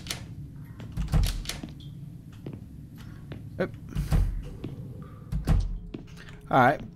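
Heavy footsteps thud slowly on a hard floor.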